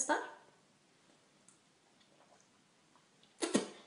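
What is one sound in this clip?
A young woman drinks from a plastic bottle with gulping sounds.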